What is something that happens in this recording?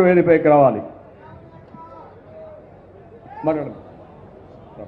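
An elderly man speaks briefly into a microphone over loudspeakers.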